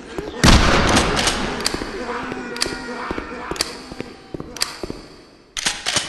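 A shotgun is pumped and reloaded with metallic clicks.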